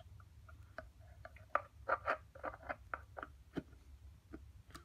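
Small metal parts click and tap together in handling.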